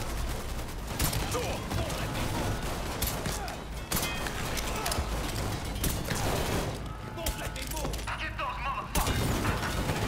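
Gunshots crack loudly in a large echoing hall.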